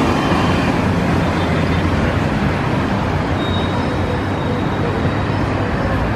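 A diesel city bus drives past.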